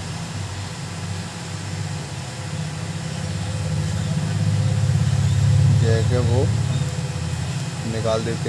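A hot air blower hums and whooshes steadily.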